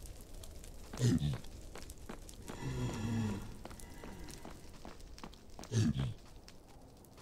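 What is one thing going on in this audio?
A creature grunts and snorts nearby.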